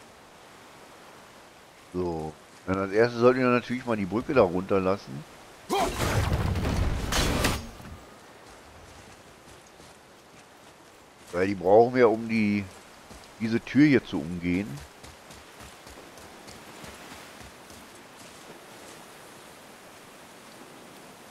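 Heavy footsteps tread on wet stone.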